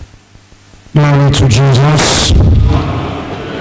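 A young man speaks through a microphone in an echoing hall.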